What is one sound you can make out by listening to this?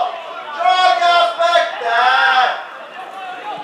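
A man cries out loudly in pain nearby.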